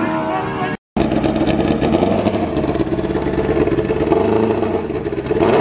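A motorcycle engine idles with a loud, rough rumble close by.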